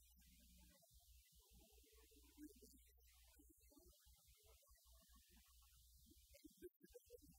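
A keyboard plays.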